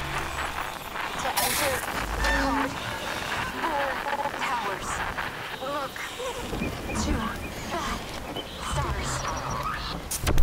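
A young woman talks casually into a microphone close by.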